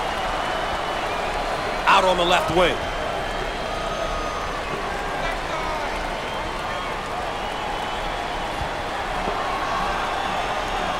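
A large crowd murmurs and cheers steadily in an echoing arena.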